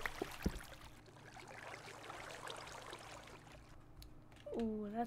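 Water flows and trickles steadily.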